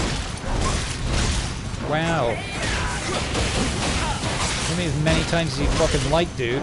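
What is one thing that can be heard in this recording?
Fire bursts with a whooshing roar.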